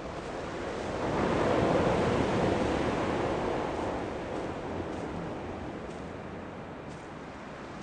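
Waves wash against rocks far below.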